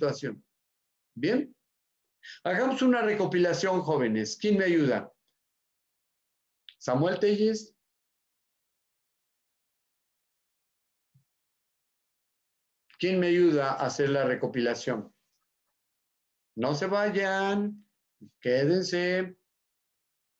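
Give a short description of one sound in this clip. An elderly man speaks calmly over an online call, with pauses.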